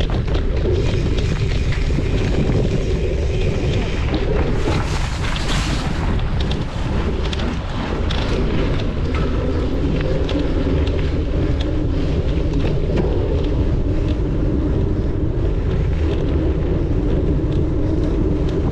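Bicycle tyres crunch and rattle over a dirt track.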